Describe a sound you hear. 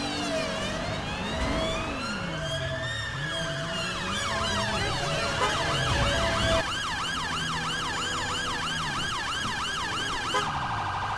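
A car engine revs and roars during a chase.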